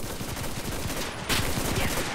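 A rifle fires close by.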